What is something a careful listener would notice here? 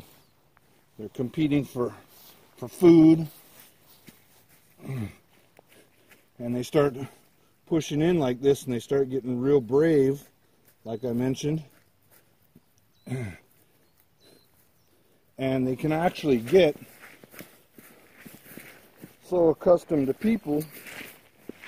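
A man talks close by, in short bursts.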